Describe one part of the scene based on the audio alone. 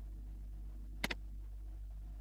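A game menu closes with a click.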